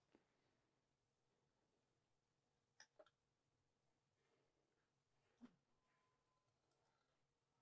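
Fingers handle thread with faint soft clicks and rustles.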